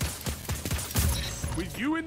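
A rifle fires a quick burst of shots.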